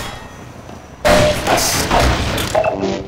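A wooden crate smashes and splinters apart.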